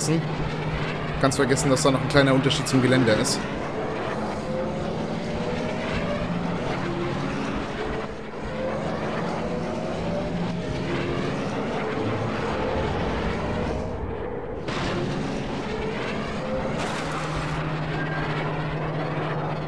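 A racing pod's engines roar and whine steadily at high speed.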